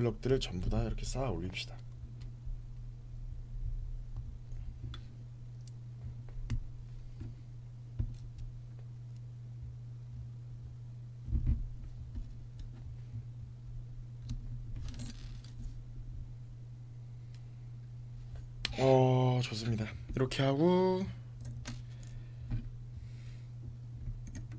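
Small plastic bricks click and snap together.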